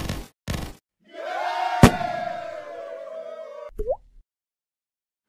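A bright victory jingle plays.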